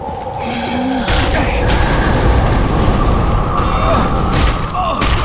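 Fiery blasts burst and crackle.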